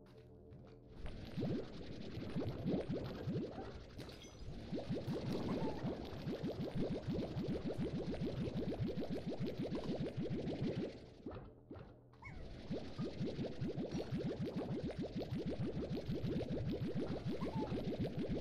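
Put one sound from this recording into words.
A game vacuum gun whooshes steadily as it sucks things in.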